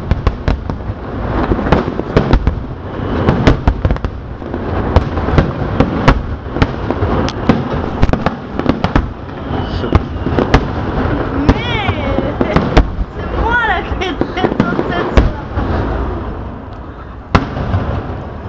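Fireworks bang and crackle outdoors, some close and some far off.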